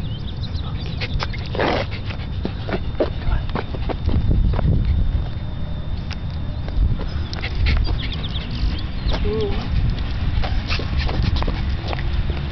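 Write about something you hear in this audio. A dog pants heavily close by.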